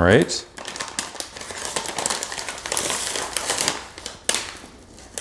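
Dry granules pour and patter into a metal bowl.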